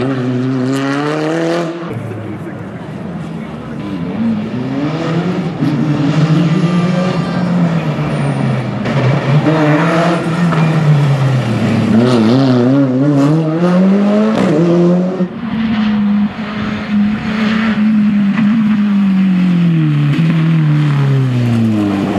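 A rally car engine revs hard, rising and falling as the car accelerates and shifts gears.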